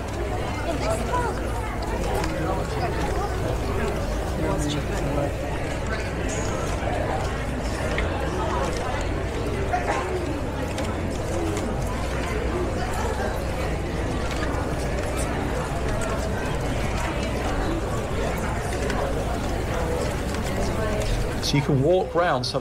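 Many people chatter on a busy outdoor street.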